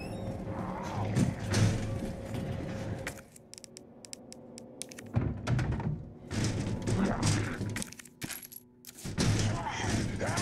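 Footsteps thud slowly across a creaky wooden floor.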